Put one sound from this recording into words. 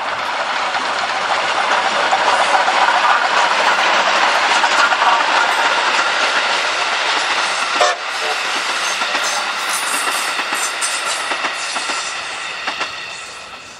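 Train wheels rumble and clatter on the rails.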